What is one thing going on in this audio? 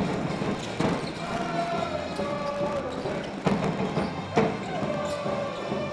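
A basketball bounces on a wooden court.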